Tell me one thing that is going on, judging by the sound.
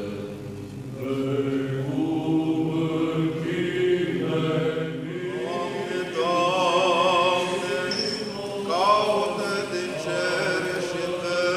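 Men's voices chant a slow, melodic hymn together in a large echoing hall.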